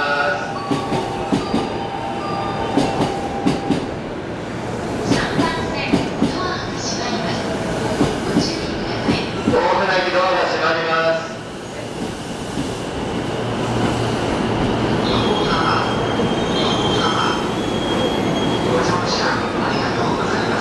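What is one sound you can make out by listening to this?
A stopped train hums steadily in a large echoing station.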